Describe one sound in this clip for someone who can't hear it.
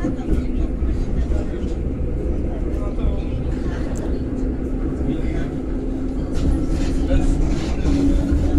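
A train rumbles steadily along the rails.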